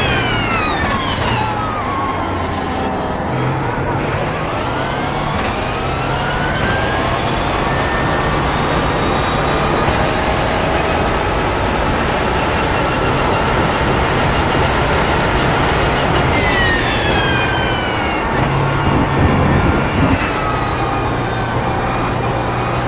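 A racing car engine roars, falling in pitch as it slows and rising as it speeds up through the gears.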